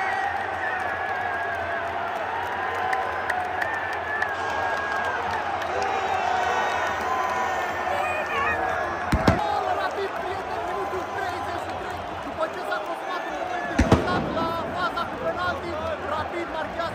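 A large stadium crowd chants and sings loudly in unison.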